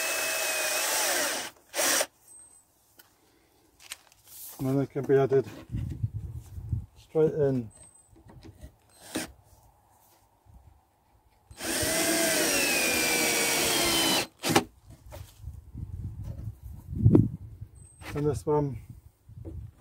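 An electric drill whirs in short bursts.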